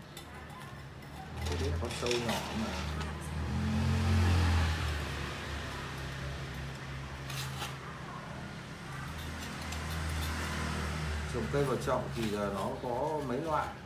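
A metal scoop scrapes and pours soil.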